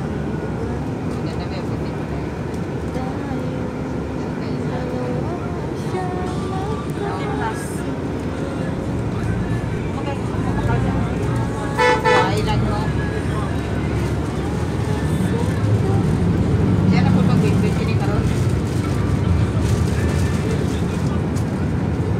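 A bus engine rumbles close by in traffic.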